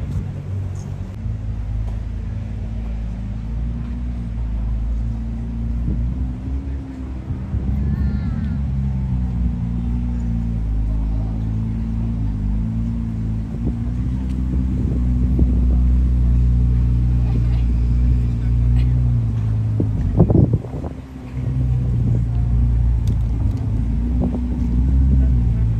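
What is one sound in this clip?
A sports car engine rumbles deeply and burbles as it idles and creeps along.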